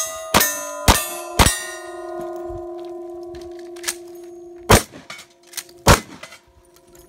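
A shotgun fires loud shots outdoors.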